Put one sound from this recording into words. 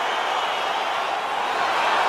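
A young woman shouts in triumph.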